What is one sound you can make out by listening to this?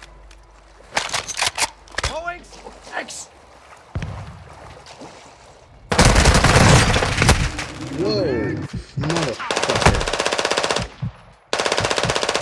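Automatic rifle fire rattles in rapid bursts.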